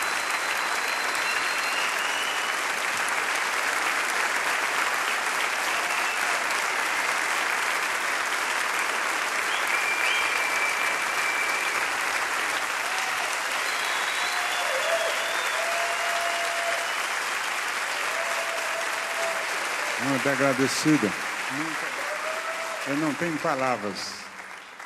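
A large crowd applauds and cheers loudly in a big hall.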